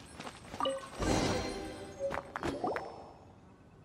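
A treasure chest creaks open with a bright chime.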